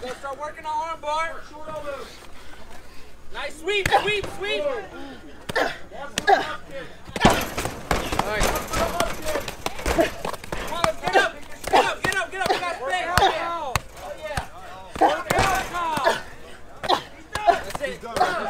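Punches thud against a fighter's body and head.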